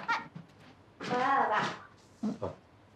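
A young girl calls out in greeting.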